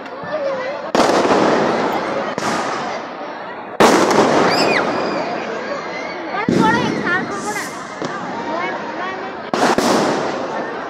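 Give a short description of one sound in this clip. Fireworks explode nearby with loud bangs.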